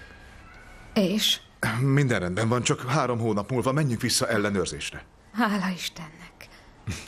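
A woman speaks calmly and close by.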